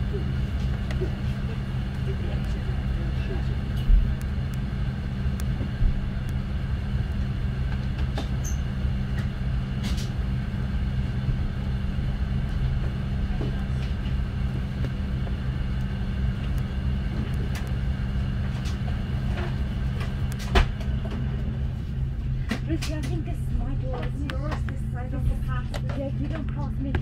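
Aircraft wheels rumble and thump over the taxiway.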